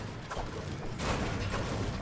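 A pickaxe strikes a wall with a sharp knock.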